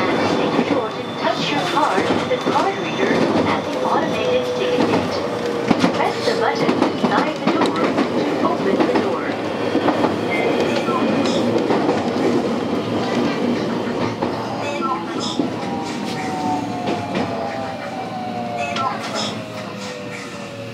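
Train wheels click and clatter over rail joints and points.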